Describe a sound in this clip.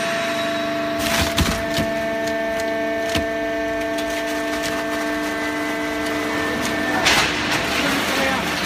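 Metal clanks and knocks inside a baling press.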